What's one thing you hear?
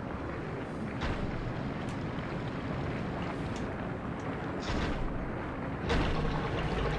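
A game character thuds down after a jump.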